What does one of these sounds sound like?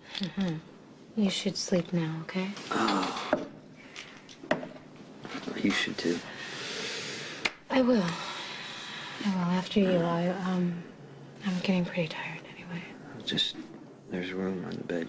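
A young woman speaks quietly and with concern, close by.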